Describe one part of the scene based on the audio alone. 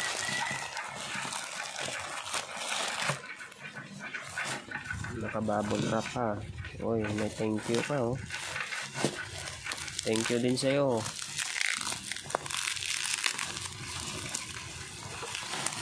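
Bubble wrap crinkles under handling fingers.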